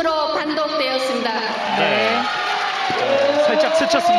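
A woman speaks calmly into a microphone, heard over a loudspeaker in a large echoing hall.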